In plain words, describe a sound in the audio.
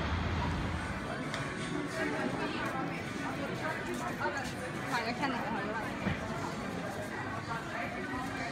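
A crowd of people chatters in a busy indoor market.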